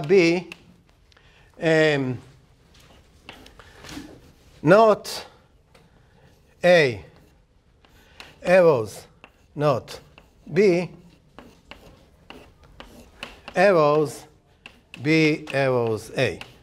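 An older man speaks in short, spaced phrases, as if lecturing.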